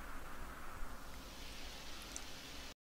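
Soft rain patters steadily.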